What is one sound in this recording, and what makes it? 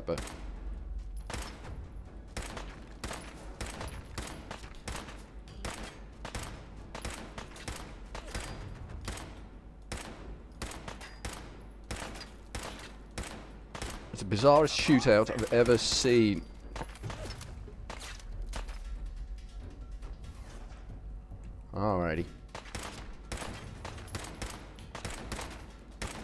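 Rifle shots ring out one after another at a steady pace.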